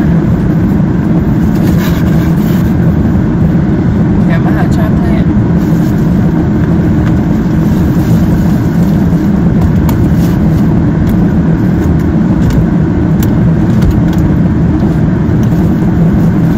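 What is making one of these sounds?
A cardboard box rustles and scrapes as it is opened.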